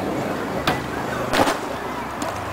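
A skateboard clatters and crashes onto concrete.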